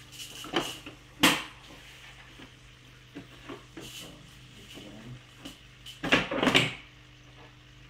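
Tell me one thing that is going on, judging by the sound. Hard plastic clicks and knocks as an aquarium filter is handled.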